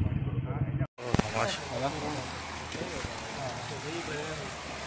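Water laps gently in a pool.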